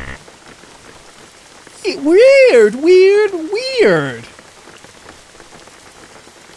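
Rain patters steadily on a car roof and windscreen.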